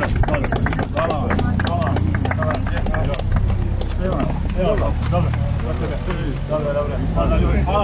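A crowd claps steadily close by.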